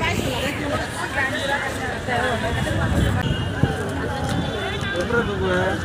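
A woman vendor talks with customers.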